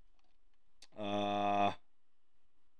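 A short menu tone sounds.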